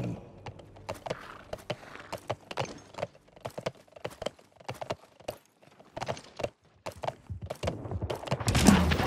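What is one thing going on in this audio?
Quick footsteps patter on a hard floor.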